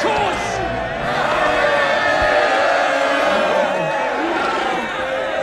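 A crowd of people cheers.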